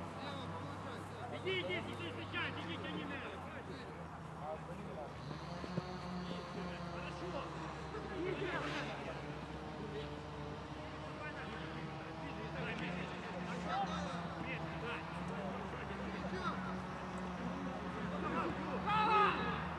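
Young men shout to each other across an open field outdoors.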